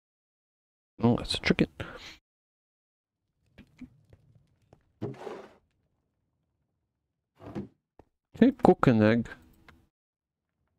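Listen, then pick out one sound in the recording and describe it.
A man talks into a close microphone in short, calm bursts.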